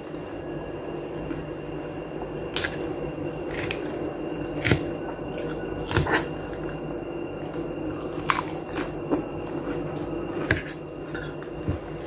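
A metal fork clinks against a metal bowl.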